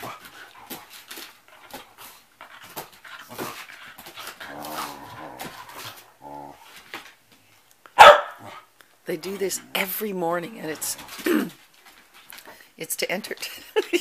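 Dog claws click and patter on a wooden floor.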